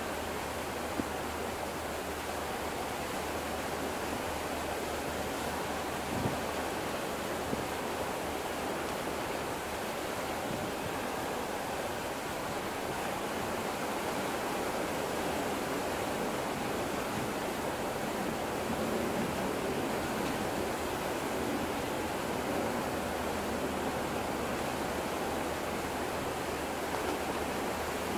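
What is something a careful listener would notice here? Water washes and laps steadily nearby.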